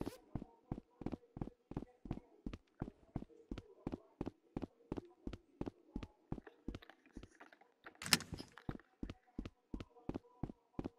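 Footsteps thud quickly and evenly on a wooden floor.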